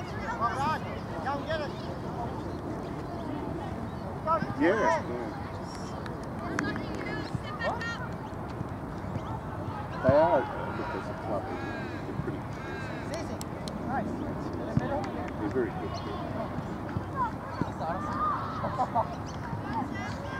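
Young girls shout to each other across an outdoor field.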